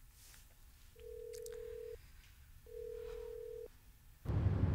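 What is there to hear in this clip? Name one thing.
A phone ringing tone beeps twice through a handset.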